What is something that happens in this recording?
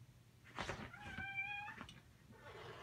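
A dog whines in short high yelps.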